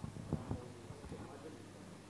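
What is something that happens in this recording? Footsteps tap on a wooden stage.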